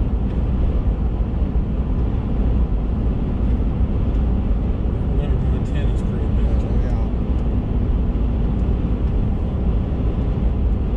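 A car engine rumbles steadily as tyres roll over the road.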